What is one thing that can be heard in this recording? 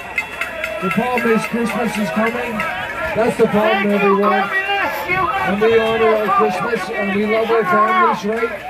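A crowd of men and women chants and cheers loudly.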